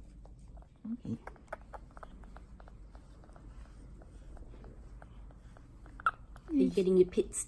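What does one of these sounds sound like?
A cloth rubs softly against fur.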